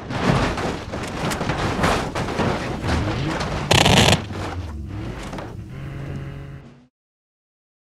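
Cars crash and crunch metal against each other.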